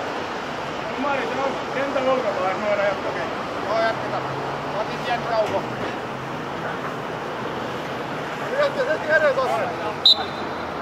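Young men call out to each other across an open field, heard from a distance.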